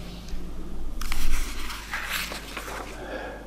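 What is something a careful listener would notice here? Paper rustles as pages are handled.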